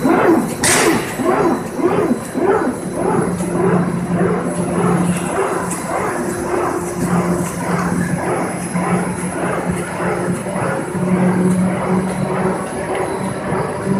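Cardboard sheets slide and flap along a conveyor belt.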